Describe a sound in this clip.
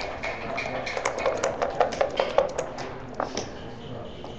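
Dice rattle in a cup.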